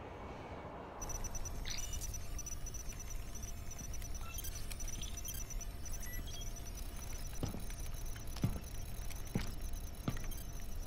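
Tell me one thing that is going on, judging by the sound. Electronic consoles beep and chirp with small high tones.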